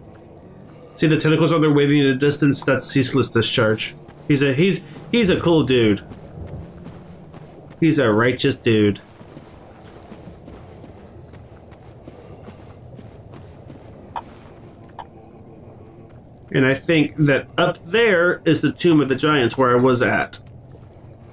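A man talks with animation into a close microphone, in bursts.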